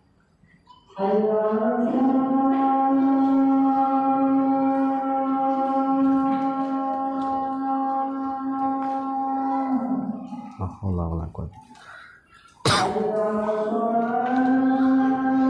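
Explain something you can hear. A young man chants slowly in a long, drawn-out melodic voice, close by.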